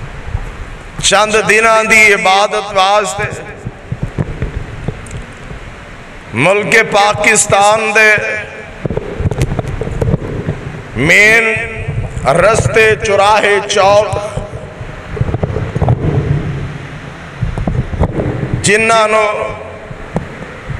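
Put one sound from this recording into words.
A man chants loudly into a microphone in a reverberant hall, in long sung phrases with pauses.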